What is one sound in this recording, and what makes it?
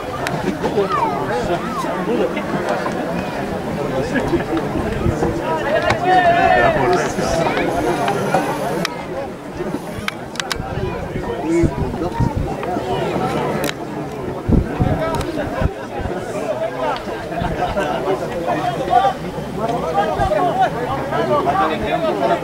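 Young men shout and call to each other outdoors on an open field.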